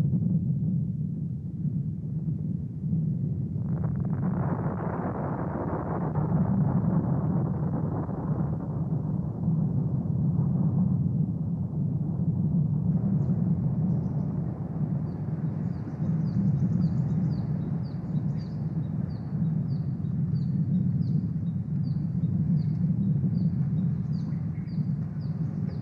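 A volcano erupts with a deep, steady rumble.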